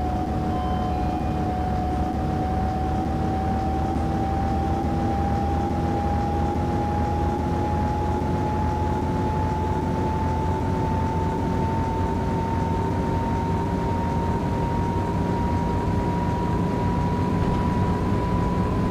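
A bus engine hums steadily and slowly rises in pitch as the bus speeds up.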